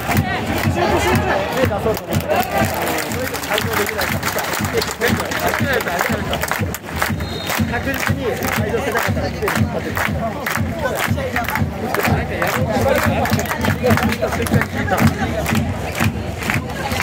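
A large crowd chants and sings loudly in an open stadium.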